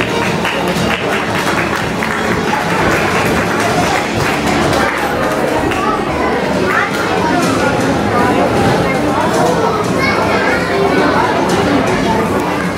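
A large audience chatters and cheers loudly in a hall.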